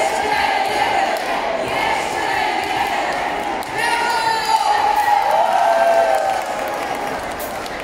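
A woman talks close by in a large echoing hall.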